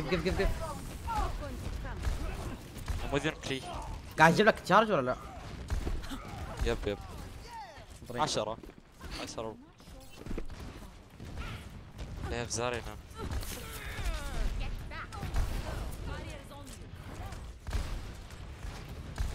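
A heavy gun fires bursts of rapid shots.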